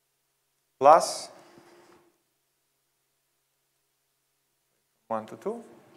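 A man speaks calmly, with short pauses.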